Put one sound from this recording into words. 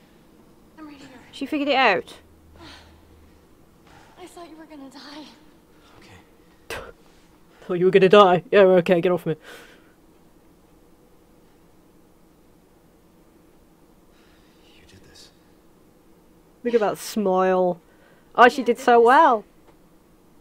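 A young woman talks and laughs with animation into a close microphone.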